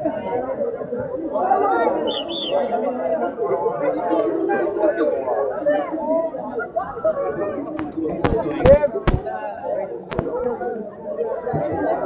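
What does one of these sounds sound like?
A large crowd of young people chatters loudly all around, outdoors.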